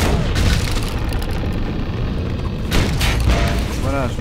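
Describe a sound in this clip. A fiery blast bursts with a loud bang.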